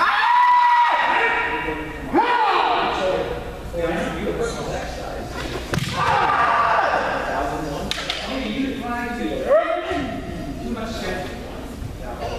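Fighters shout loud, drawn-out cries that echo in a large hall.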